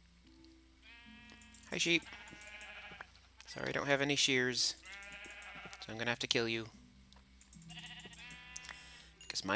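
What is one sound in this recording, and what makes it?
A sheep bleats several times nearby.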